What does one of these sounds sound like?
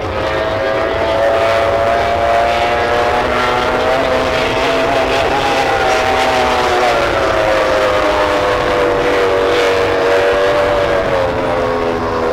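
A racing powerboat's engine whines loudly and steadily as it speeds across the water.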